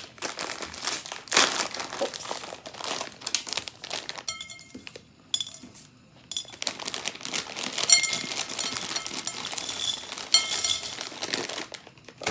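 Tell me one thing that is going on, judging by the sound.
A plastic bag crinkles and rustles as it is torn open.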